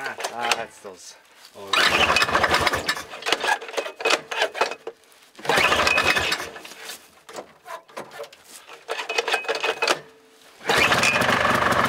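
A man yanks a pull-start cord on a small engine several times.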